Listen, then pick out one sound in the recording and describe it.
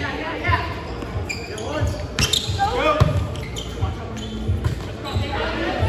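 Several young adults call out and talk in a large echoing gym.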